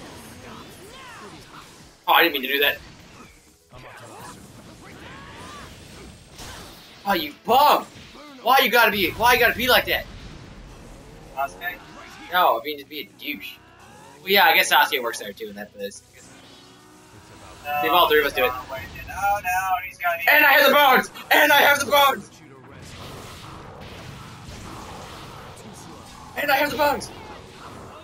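Blasts and impacts from a fighting game crash.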